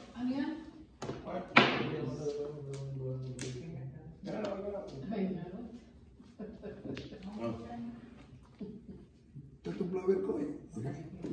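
Mahjong tiles click and clack against each other and the table.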